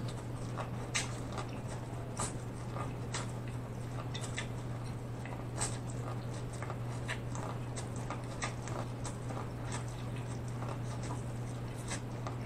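A man bites and chews corn on the cob with loud, wet crunching close to a microphone.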